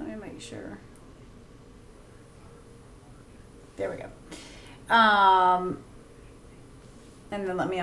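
A young woman speaks casually into a close microphone.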